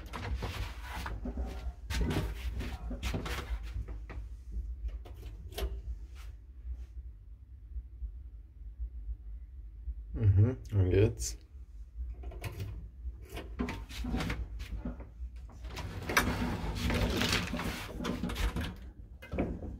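An old lift hums and rumbles steadily.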